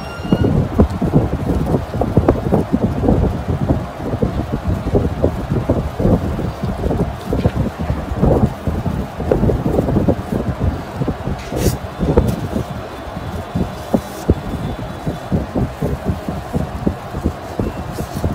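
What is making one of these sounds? Soft, wet matter squelches and crackles as it is squeezed out close by.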